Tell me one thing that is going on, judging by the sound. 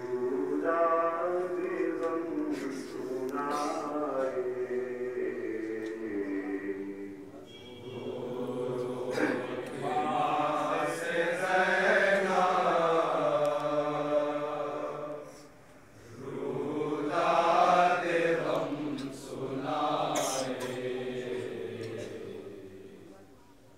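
Men beat their chests with their hands.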